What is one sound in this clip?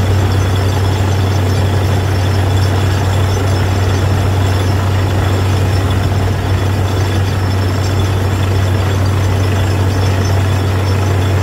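A drilling rig's engine roars steadily and loudly close by.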